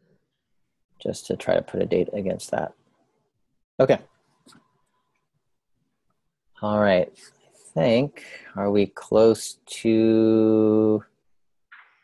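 A man speaks casually over an online call, in bursts with pauses.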